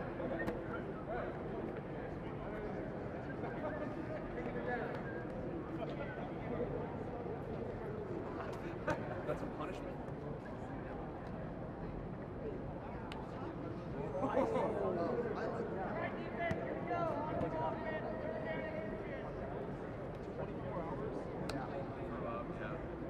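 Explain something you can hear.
Several men talk in a group nearby, outdoors in a large open space.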